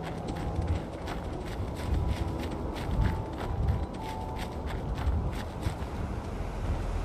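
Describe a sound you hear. Footsteps run quickly over dry ground.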